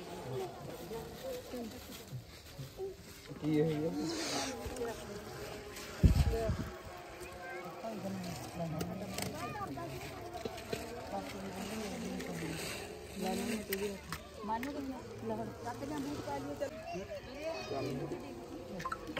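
Several women and children talk and chatter nearby, outdoors.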